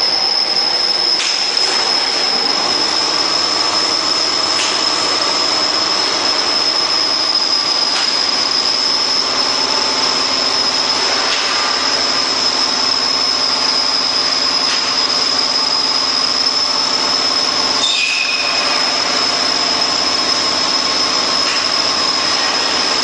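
A laminating machine hums and whirs steadily as its rollers turn.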